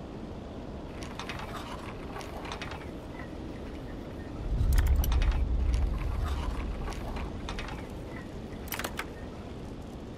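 Metal lock picks scrape and click inside a lock.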